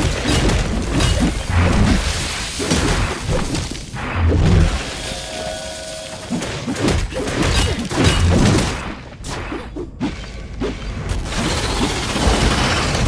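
A huge monster stomps and thuds heavily.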